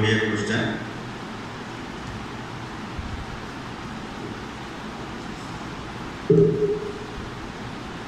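A man speaks calmly into a microphone, with long pauses.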